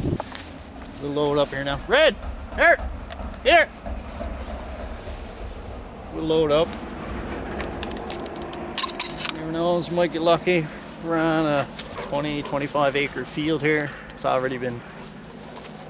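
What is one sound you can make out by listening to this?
A man talks calmly and close by, outdoors.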